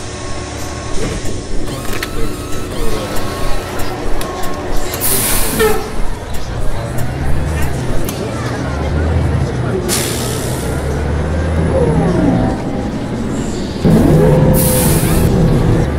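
A diesel city bus engine revs as the bus pulls away.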